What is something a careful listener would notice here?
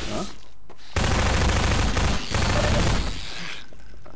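Gunshots blast loudly in quick succession.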